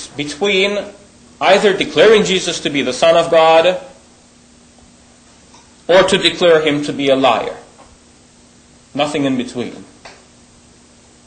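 A man speaks calmly into a microphone in bursts with pauses.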